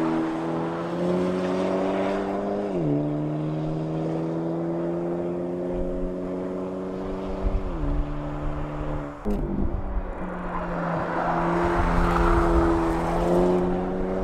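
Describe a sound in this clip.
A car engine revs hard, dropping in pitch with each gear change.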